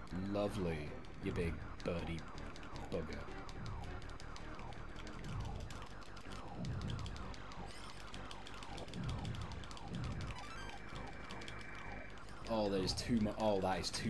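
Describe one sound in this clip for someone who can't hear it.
Laser blasts fire in rapid, falling zaps.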